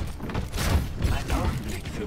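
Rapid gunshots fire in short bursts.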